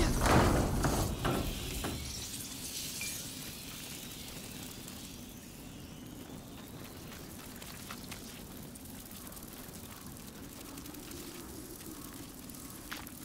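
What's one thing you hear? A fire crackles and roars nearby.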